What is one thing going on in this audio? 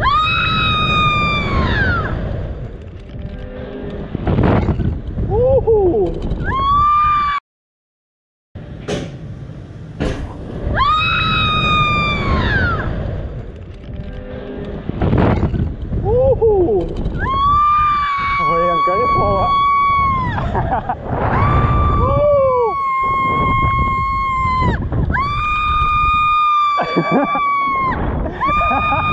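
Young women scream loudly and long, close by.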